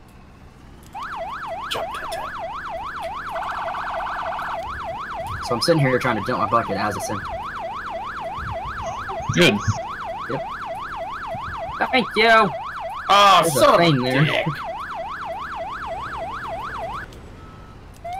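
A siren wails rapidly up and down.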